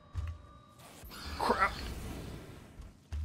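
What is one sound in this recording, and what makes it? A loud explosion bursts and roars.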